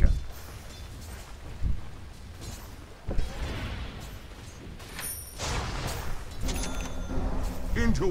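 Fiery spell effects burst and crackle in a fight.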